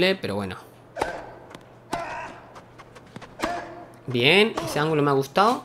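A tennis racket strikes a ball with a sharp pop.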